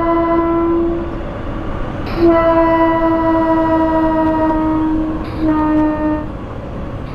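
A train horn sounds in long, steady blasts.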